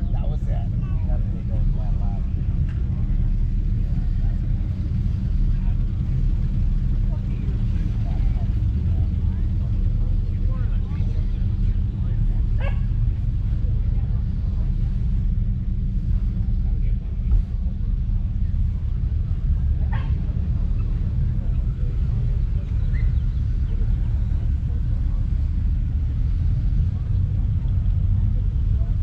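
People chatter faintly in the distance outdoors.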